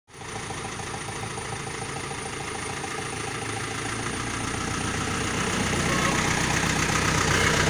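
A diesel engine rumbles steadily as an off-road vehicle drives closer, growing louder.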